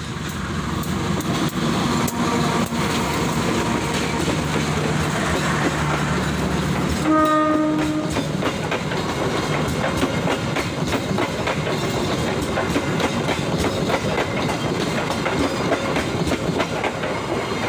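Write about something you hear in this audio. Passenger coach wheels clatter over rail joints as a train passes close.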